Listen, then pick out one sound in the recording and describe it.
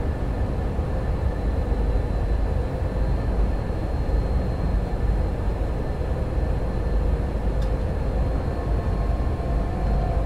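A train rumbles steadily along the tracks with a low, deep drone.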